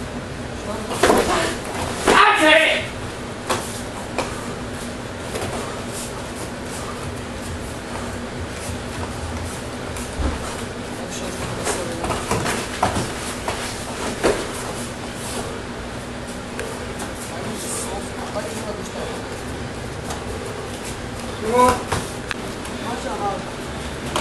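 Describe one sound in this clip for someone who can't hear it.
A young man shouts sharply while fighting.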